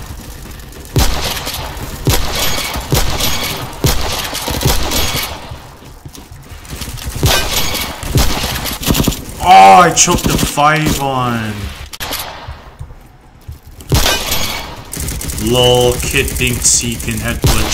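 Gunshots crack sharply, one after another.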